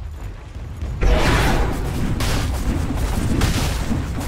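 Explosive blasts rumble loudly.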